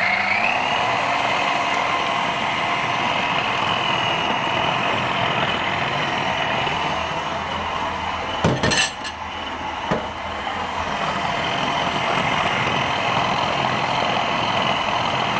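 Food churns and rattles against a plastic bowl.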